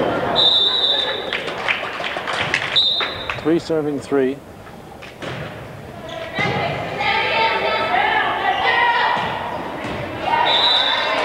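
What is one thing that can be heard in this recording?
A referee's whistle blows in short shrill blasts.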